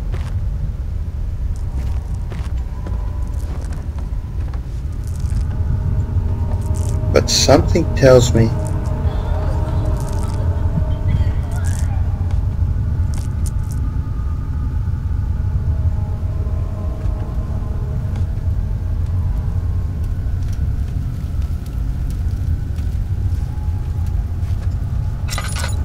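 Footsteps tread slowly on stone steps and floor.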